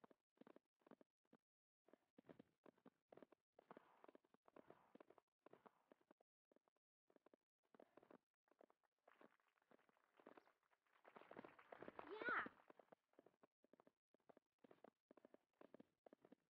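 A horse's hooves thud in a quick gallop rhythm.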